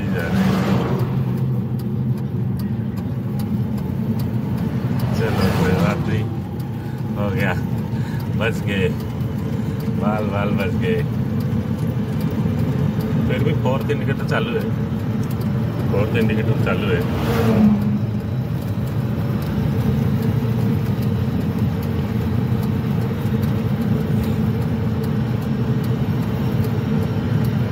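A small vehicle's engine hums steadily as it drives along a road.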